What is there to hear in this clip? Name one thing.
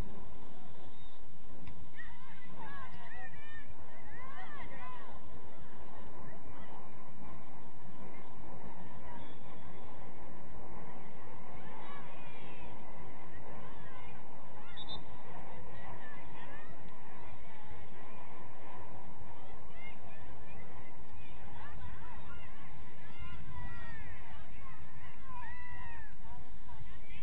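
Young women shout and call to each other across an open field, heard from a distance.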